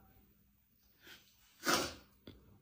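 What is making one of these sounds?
A young woman sobs and sniffles.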